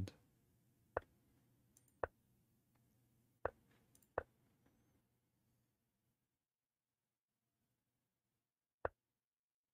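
Short sharp clicks sound as chess pieces are moved.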